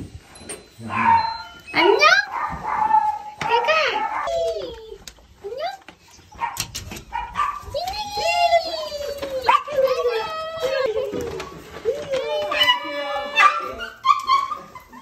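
A dog whines and cries excitedly close by.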